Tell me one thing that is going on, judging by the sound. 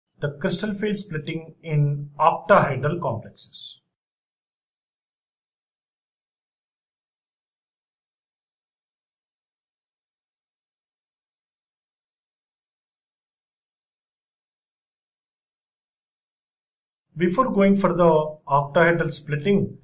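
A man speaks calmly into a microphone, in short bursts with a long pause between them.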